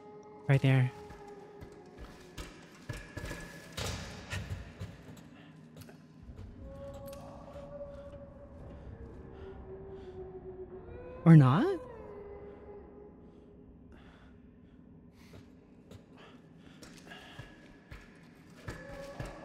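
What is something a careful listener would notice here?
A young woman talks and exclaims with animation into a close microphone.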